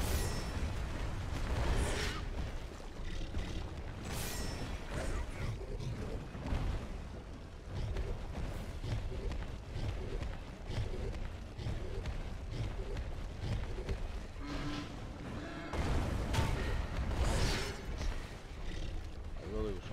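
A huge beast growls and roars.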